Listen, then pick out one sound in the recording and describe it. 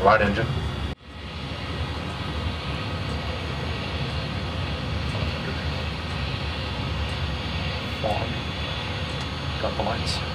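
Heavy rain patters against a windscreen.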